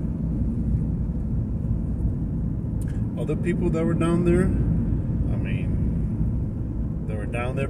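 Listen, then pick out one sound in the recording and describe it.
A low rumble of a car interior runs throughout.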